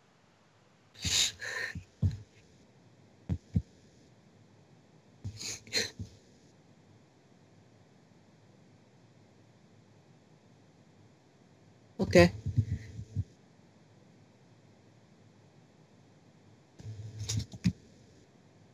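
A teenage boy talks in short bursts, close to the microphone of an online call.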